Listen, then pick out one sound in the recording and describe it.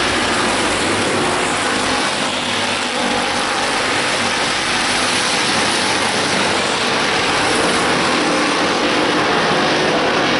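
Race car engines roar loudly around a track.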